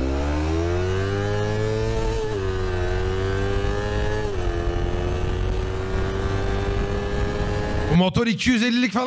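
A motorcycle engine whines steadily, rising and falling in pitch as it revs.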